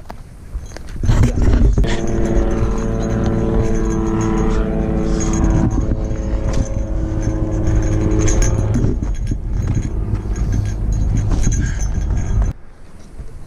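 Wind gusts roughly across the microphone outdoors.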